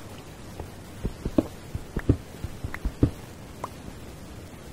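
A pickaxe chips at stone in a quick series of sharp knocks.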